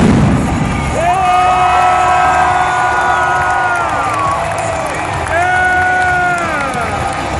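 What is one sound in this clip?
Loud music plays over arena loudspeakers.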